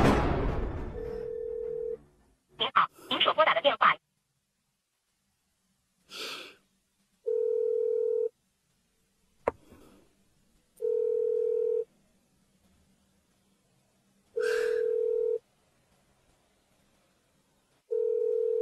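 A phone's ringing tone beeps steadily in pauses through the earpiece.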